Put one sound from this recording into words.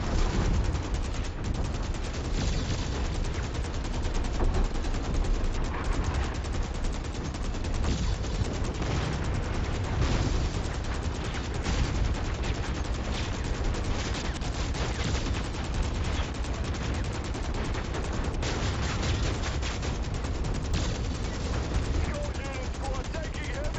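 A deep engine rumble hums throughout.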